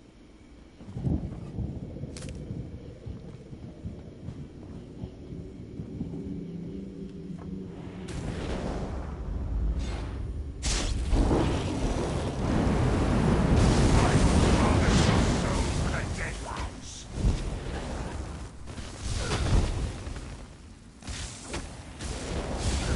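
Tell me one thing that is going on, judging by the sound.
Electric magic crackles and bursts loudly.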